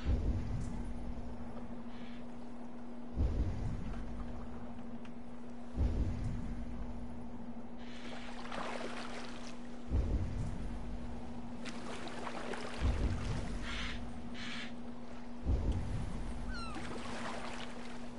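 Oars splash in the water at a steady, unhurried pace.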